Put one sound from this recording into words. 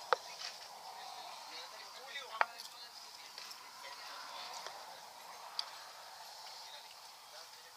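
Hot sauce squirts from a squeeze bottle onto food.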